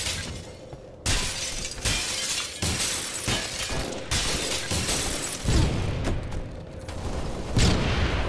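Guns fire in short bursts.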